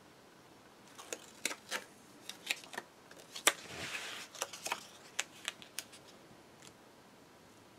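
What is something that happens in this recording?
Paper crackles and taps sharply as a strip is peeled and pressed.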